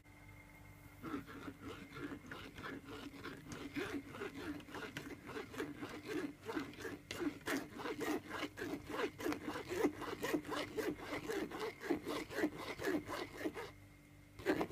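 A metal spoon scrapes and stirs a thick liquid in a pot.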